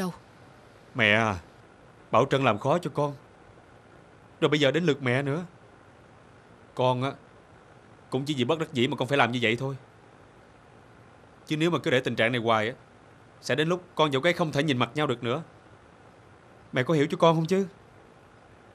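A man speaks nearby with halting emotion.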